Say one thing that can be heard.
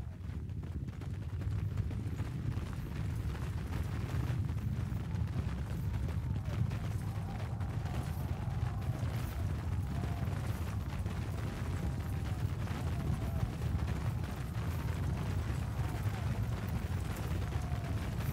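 Armoured soldiers march over grass.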